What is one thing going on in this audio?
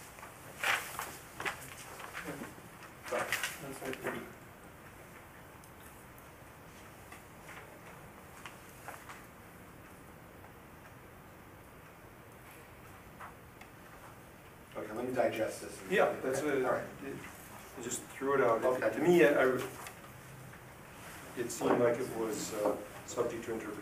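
A middle-aged man speaks calmly, a little distant.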